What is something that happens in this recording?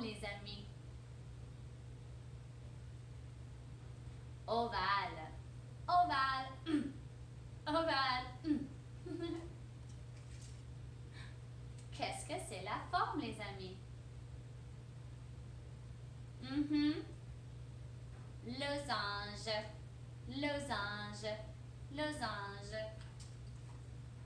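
A young woman speaks close by, with animation, in short bursts.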